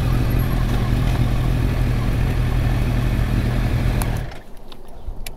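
A motorcycle engine rumbles steadily, then cuts out.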